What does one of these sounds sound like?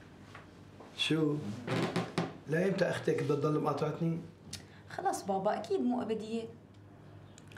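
A middle-aged man speaks in a deep voice.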